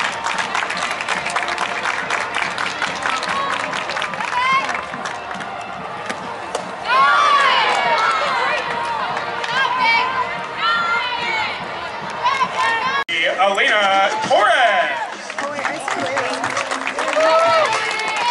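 Young women shout and cheer in a group outdoors.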